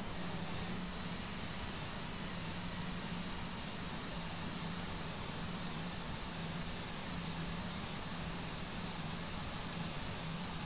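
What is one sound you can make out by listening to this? Rushing air roars steadily past an airliner.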